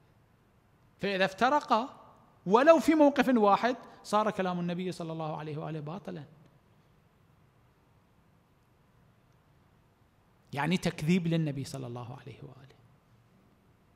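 A middle-aged man speaks calmly and expressively into a microphone, with pauses between phrases.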